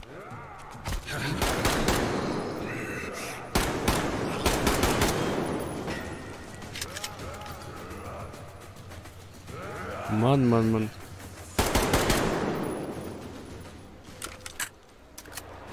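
Gunshots bang in quick bursts.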